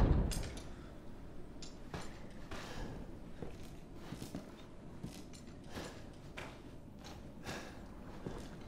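Footsteps creak slowly across a wooden floor.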